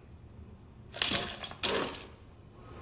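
Bolt cutters snap through a metal chain.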